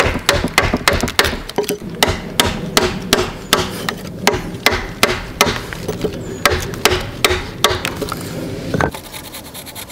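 A wooden mallet strikes a chisel into wood in quick, steady blows.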